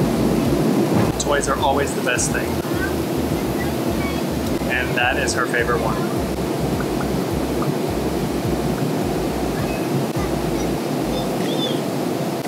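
A baby babbles and coos.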